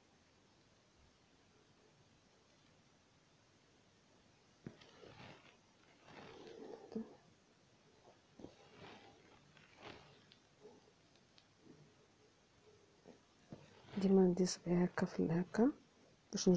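Thread rasps softly as it is pulled through cloth.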